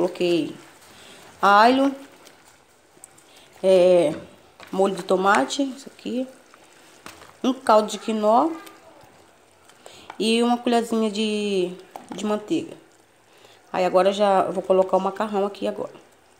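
A spatula stirs liquid in a metal pot.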